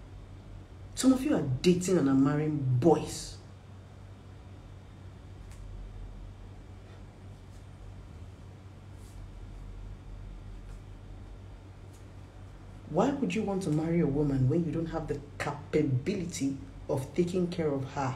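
A woman speaks close by with feeling, in short bursts with pauses.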